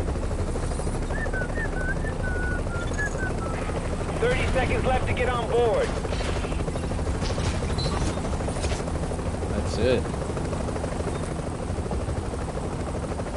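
A helicopter engine hums with a steady low rumble.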